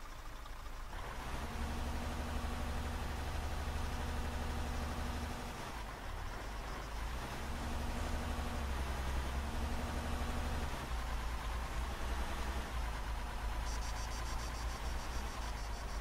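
A heavy truck drives along, its engine rumbling loudly and low.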